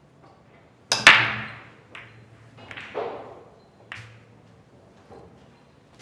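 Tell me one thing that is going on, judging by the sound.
Billiard balls clack against each other and scatter across the table.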